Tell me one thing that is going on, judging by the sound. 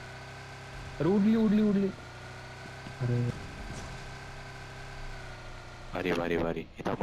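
A car engine hums steadily as the car drives, then stops.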